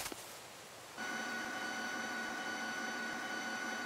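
A game's energy beam hums steadily.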